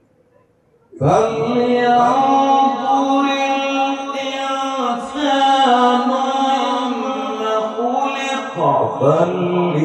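An elderly man recites in a long, sustained melodic chant through a loudspeaker microphone.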